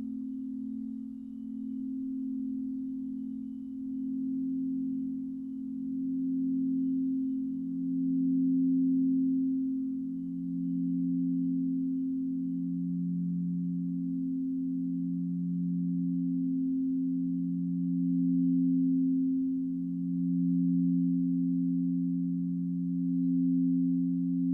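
Crystal singing bowls hum with deep, steady tones that slowly swell and fade.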